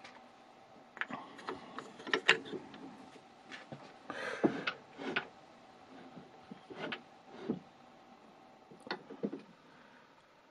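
Metal parts of a lathe click and clunk as they are handled.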